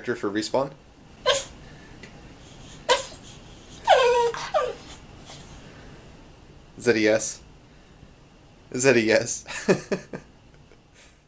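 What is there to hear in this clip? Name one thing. A dog yowls and whines in short, wavering bursts close by.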